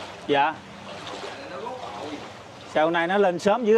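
A man wades through floodwater, splashing.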